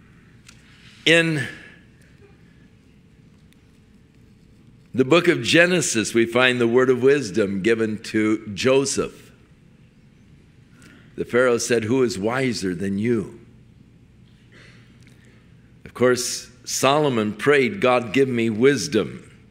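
An elderly man speaks with feeling into a microphone.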